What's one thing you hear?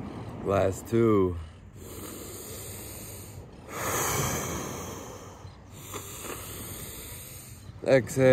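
A man hums and chants in short drawn-out tones close by.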